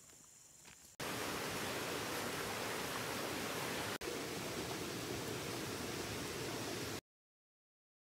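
A stream flows and burbles nearby.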